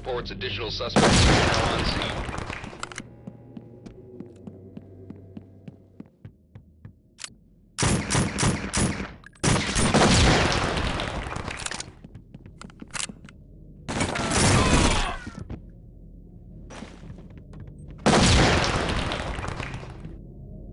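A submachine gun fires loud rapid bursts.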